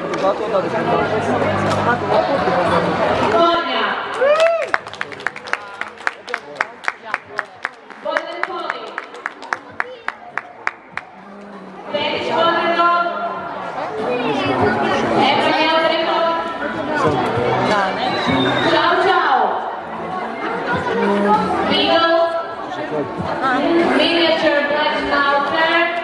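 A young woman speaks calmly into a microphone, heard over a loudspeaker.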